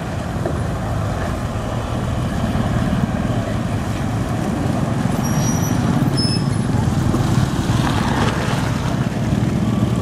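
A small motorcycle passes close by.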